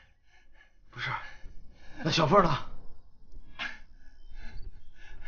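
A young man cries out in pain.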